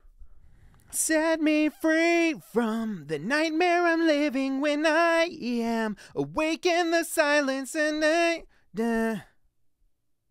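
A man sings loudly and with feeling into a close microphone.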